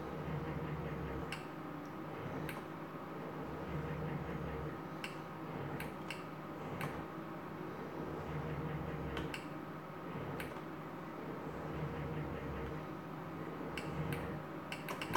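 A slot machine plays a looping electronic tune.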